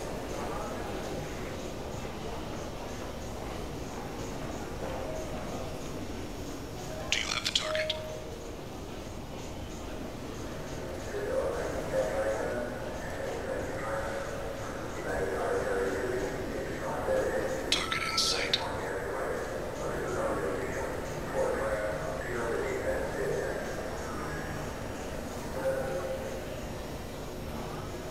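Footsteps tap steadily on a hard metal walkway.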